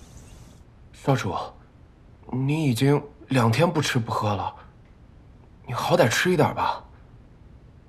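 A young woman speaks softly and pleadingly nearby.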